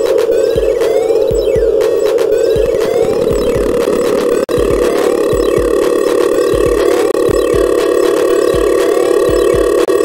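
Electronic music plays with a steady low buzzing drone and a thumping beat.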